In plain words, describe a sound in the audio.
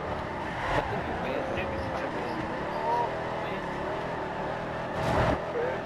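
Tyres screech while sliding through a corner.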